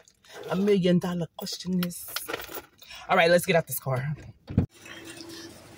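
A woman talks with animation close to the microphone.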